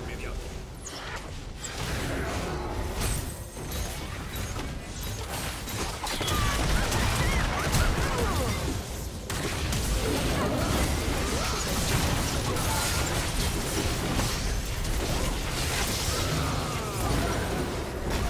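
Magic blasts and weapon hits clash in a fast fantasy battle.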